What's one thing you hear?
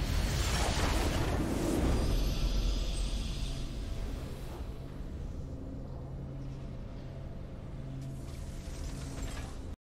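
A triumphant victory fanfare plays and slowly fades.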